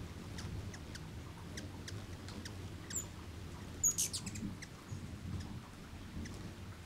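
Hummingbird wings hum and whir close by.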